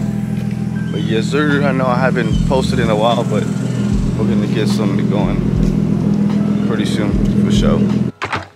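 A man talks calmly close to the microphone.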